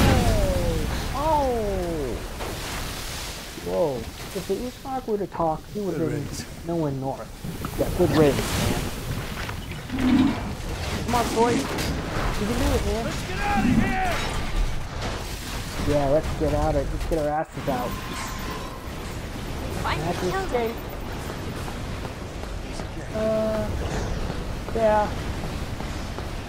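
A man speaks tensely.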